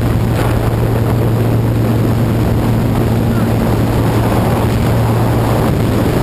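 Wind roars loudly through an open plane door.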